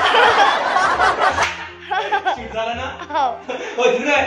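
A woman laughs close by.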